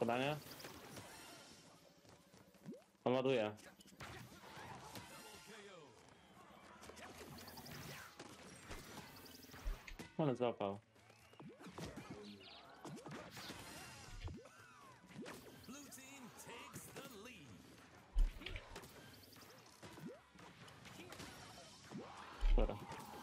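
Punchy electronic game effects burst and clash throughout.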